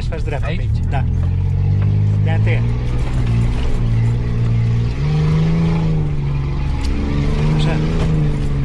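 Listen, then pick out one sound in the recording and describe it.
A vehicle engine drones steadily and rises and falls in pitch.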